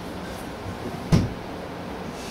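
A person thumps down heavily onto a bed.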